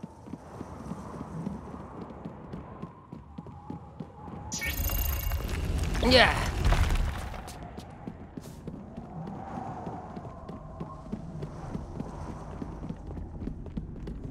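Light footsteps patter quickly on a dirt path.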